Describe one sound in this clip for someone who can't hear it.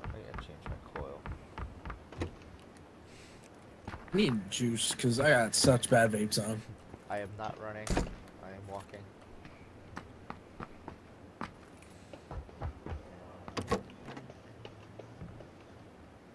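Footsteps run quickly over hard ground and floors.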